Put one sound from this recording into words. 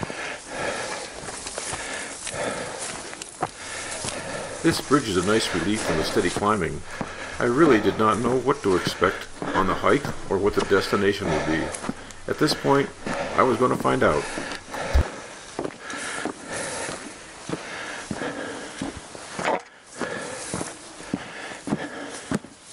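Footsteps brush through tall grass along a narrow trail.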